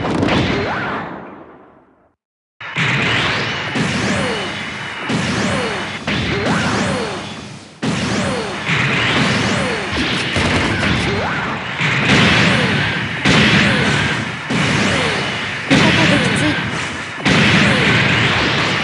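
Jet thrusters roar steadily in bursts.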